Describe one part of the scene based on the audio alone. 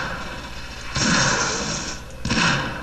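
A loud blast bursts out nearby.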